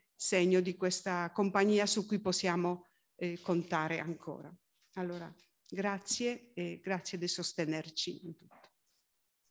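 An elderly woman speaks calmly into a microphone, heard through a loudspeaker in a large room.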